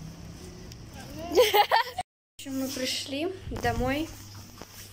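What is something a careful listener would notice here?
A young girl speaks with animation close to a phone's microphone.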